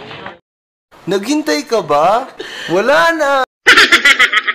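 Young men laugh loudly close to a microphone.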